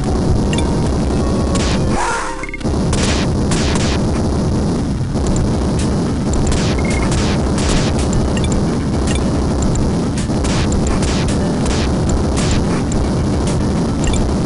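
Retro game music and sound effects play steadily with brief whooshing bursts.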